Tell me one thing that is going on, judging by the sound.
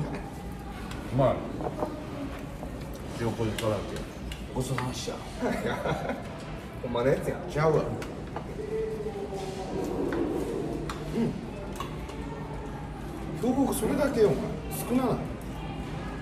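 Young men talk and laugh together close by.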